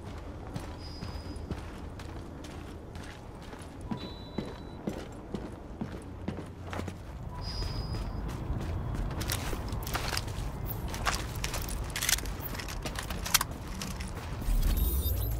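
Footsteps crunch on the ground.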